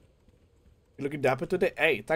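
A young man speaks loudly and with animation close to a microphone.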